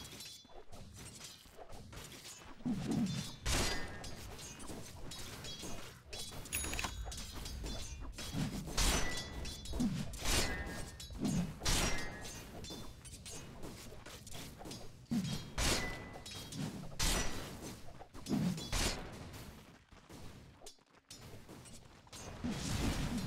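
Swords clash and magic effects whoosh in a fast fight.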